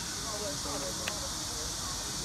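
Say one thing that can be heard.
A wooden game piece clicks down onto a board.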